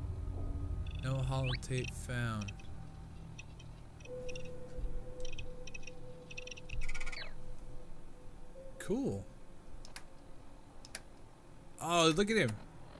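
An electronic device makes warbling, sweeping tones.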